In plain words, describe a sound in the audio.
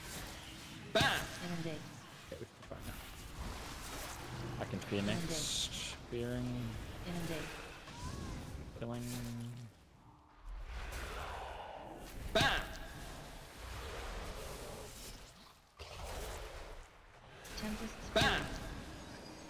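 Heavy magical blasts boom now and then.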